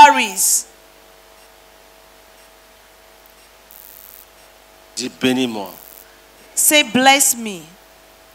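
A woman speaks loudly into a microphone over loudspeakers.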